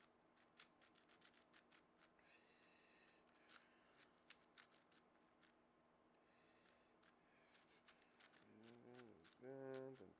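A puzzle cube's plastic layers click and clack as they turn quickly.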